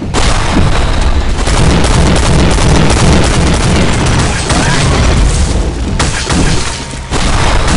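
A heavy gun fires rapidly and steadily.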